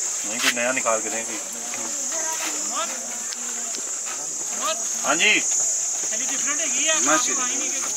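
Several men talk casually close by.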